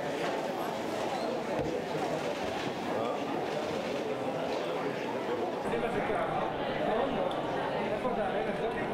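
Men murmur in low voices nearby.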